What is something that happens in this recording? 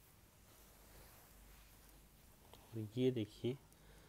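A hand brushes softly over silky cloth.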